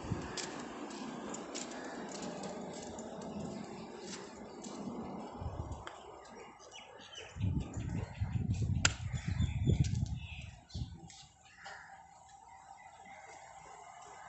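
A dog's claws patter on paving stones.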